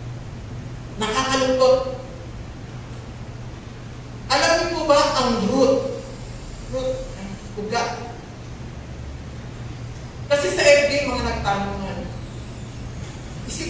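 A woman speaks through a microphone and loudspeakers in an echoing hall, in short phrases with pauses.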